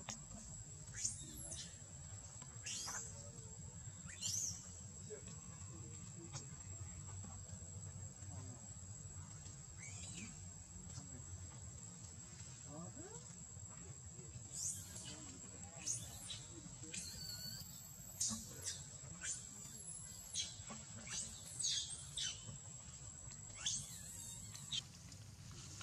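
A baby monkey squeals and cries shrilly, over and over.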